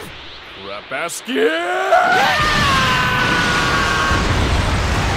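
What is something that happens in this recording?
A man screams loudly.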